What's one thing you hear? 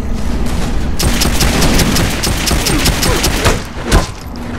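Rapid gunshots fire in quick bursts.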